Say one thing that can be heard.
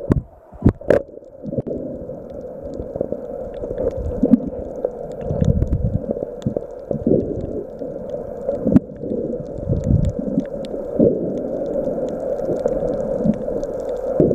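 Underwater, muffled bubbling and rumbling fill the sound.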